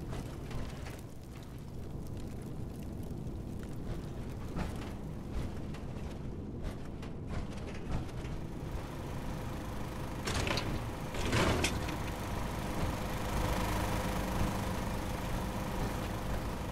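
Heavy armoured footsteps clank on a floor.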